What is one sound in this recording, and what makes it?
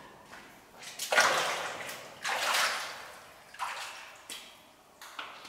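Water splashes underfoot as a woman wades in.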